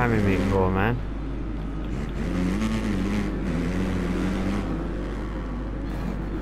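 A motocross bike engine revs and whines, rising and falling in pitch.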